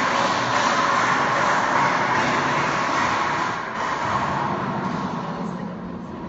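A young man speaks into a microphone in a large echoing hall.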